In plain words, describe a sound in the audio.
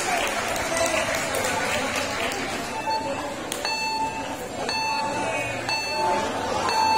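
A crowd of young people chatters in the background.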